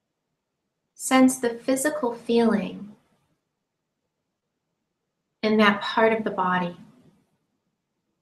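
A woman speaks calmly and softly, close to the microphone, in two short phrases with silence between.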